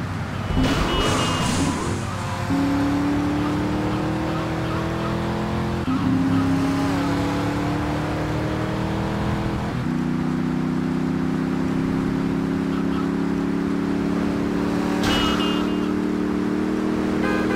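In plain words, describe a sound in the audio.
A sports car engine revs and roars, rising in pitch through the gears.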